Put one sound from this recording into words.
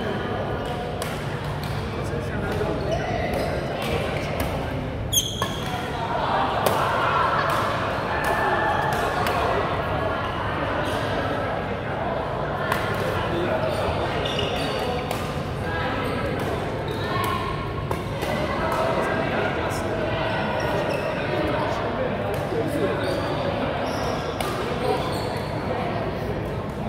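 Shuttlecocks are struck with sharp pops of rackets.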